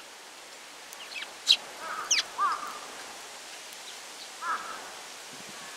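A small bird chirps close by.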